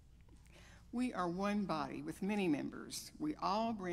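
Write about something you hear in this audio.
An elderly woman speaks into a microphone in an echoing room.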